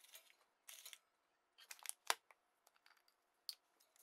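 A paper bag is set down with a crinkle and a thud.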